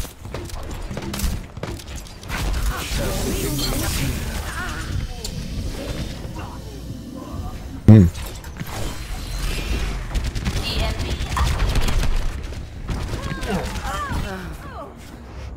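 A video game's energy beam hums steadily.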